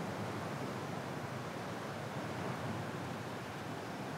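Wind rushes through tree branches.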